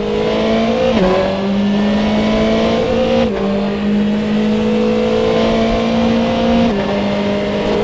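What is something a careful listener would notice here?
A racing car engine drops in pitch with each quick gear shift, then climbs again.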